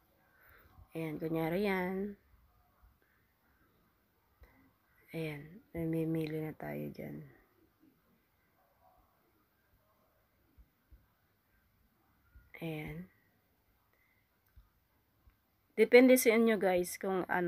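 A young woman talks calmly into a close microphone, in short bursts.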